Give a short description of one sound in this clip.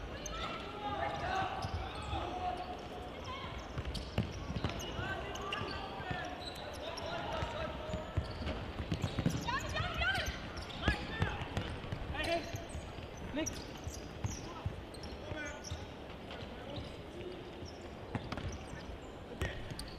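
Sneakers squeak sharply on an indoor court.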